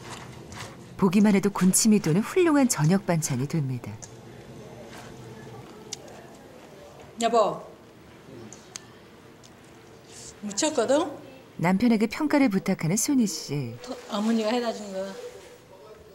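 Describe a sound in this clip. A middle-aged woman speaks nearby with animation.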